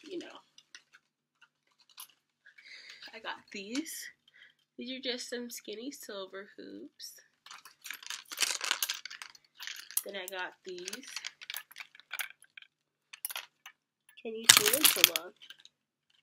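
Cardboard and plastic packaging rustles and crinkles in hands.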